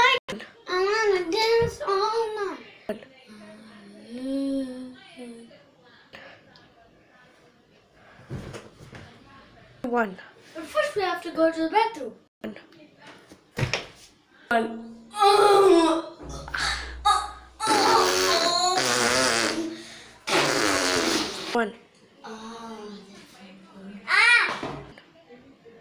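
A young boy sings loudly and with feeling, close by.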